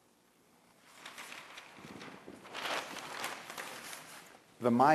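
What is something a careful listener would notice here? A large sheet of paper rustles as it is flipped over.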